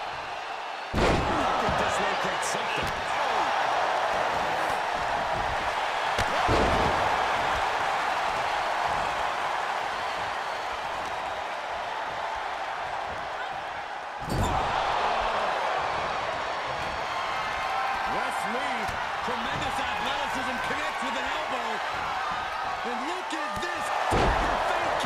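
Bodies slam hard onto a wrestling ring mat with heavy thuds.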